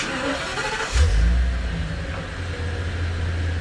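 A motorcycle engine starts and idles with a low rumble.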